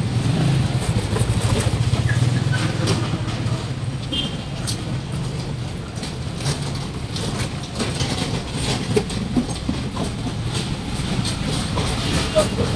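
Motorbike engines hum and pass along a busy street.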